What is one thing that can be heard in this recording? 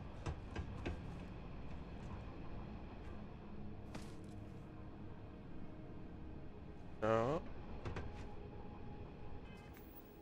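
Footsteps clank on a metal walkway.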